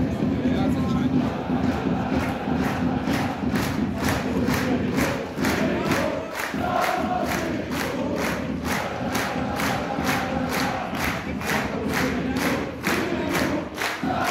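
A large crowd of fans claps in a fast, steady rhythm.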